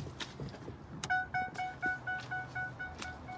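A car's door-open chime dings over and over.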